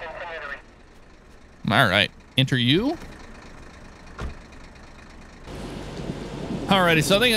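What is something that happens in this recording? A police siren wails in short bursts.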